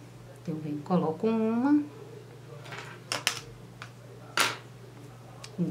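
Small glass beads click softly against a needle.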